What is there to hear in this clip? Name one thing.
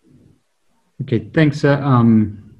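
A man speaks through an online call.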